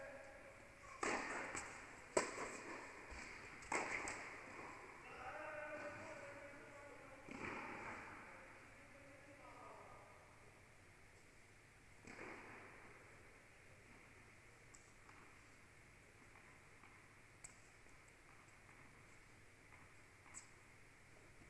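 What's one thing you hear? Tennis balls are struck with rackets and bounce in a large echoing hall.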